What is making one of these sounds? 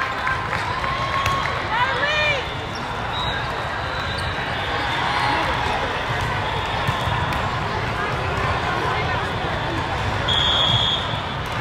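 A volleyball thuds off hands and arms.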